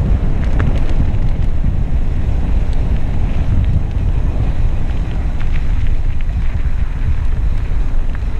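Mountain bike tyres roll downhill over a gravel track.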